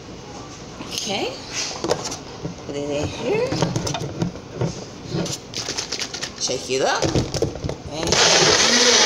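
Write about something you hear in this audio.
A plastic cup clicks and clatters as it is fitted onto a blender base.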